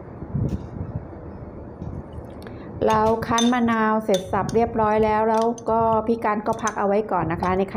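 A metal spoon clinks and scrapes against a bowl.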